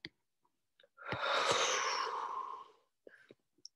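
A woman yawns loudly and breathily.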